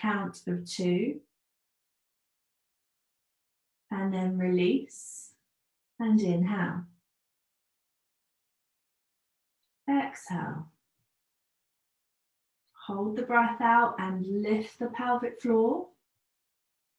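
A young woman speaks calmly and softly in short phrases, close by.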